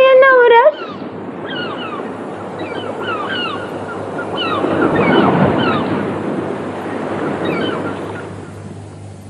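Seagulls cry overhead.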